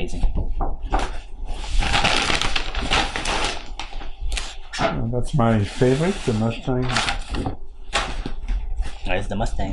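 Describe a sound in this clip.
Large sheets of paper rustle and crinkle as they are shuffled.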